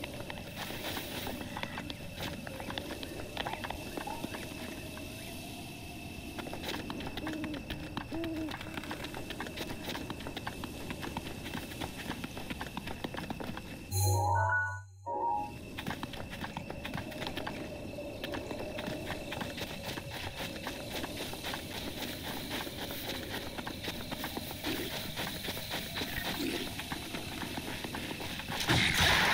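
Footsteps patter quickly on grass and stone.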